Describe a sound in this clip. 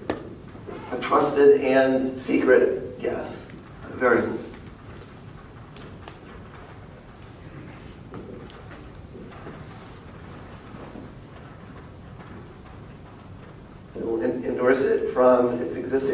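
A man lectures calmly.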